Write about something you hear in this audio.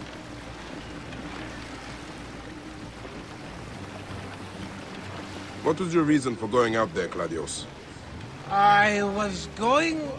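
Water splashes and rushes against the hull of a sailing boat.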